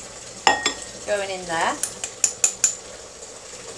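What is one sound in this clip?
A mug clinks against a glass bowl.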